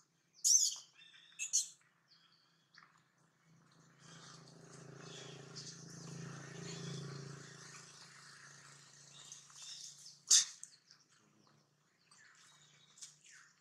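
Leaves and branches rustle as monkeys clamber in a tree.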